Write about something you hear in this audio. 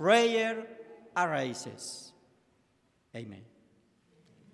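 A middle-aged man sings through a microphone in a large echoing room.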